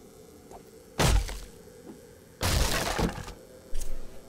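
A metal bar strikes a wooden crate with heavy thuds.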